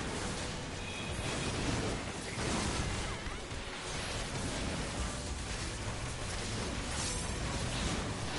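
Video game combat effects whoosh and clash rapidly.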